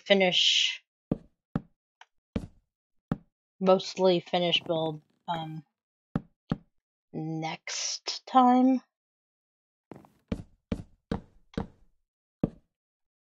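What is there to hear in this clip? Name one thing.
Wood is chopped with sharp, repeated knocks.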